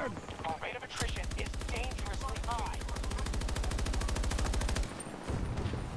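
A rifle fires in a rapid, steady burst.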